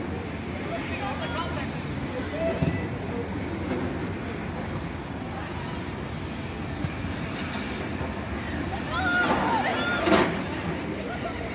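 Football players shout to each other across an open outdoor field.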